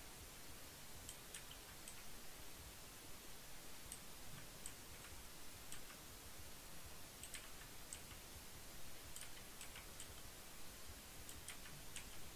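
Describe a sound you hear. Stone blocks are placed with short soft clicks.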